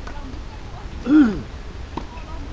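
A woman calls out briefly outdoors.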